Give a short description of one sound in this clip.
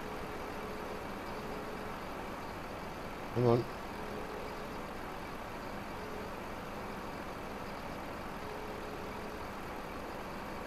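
A heavy vehicle's engine idles with a steady low hum.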